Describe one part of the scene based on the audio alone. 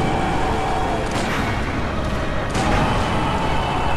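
Heavy blows crash and thud.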